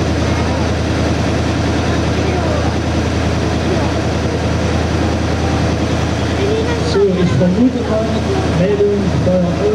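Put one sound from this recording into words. Water hisses as it sprays from a fire hose.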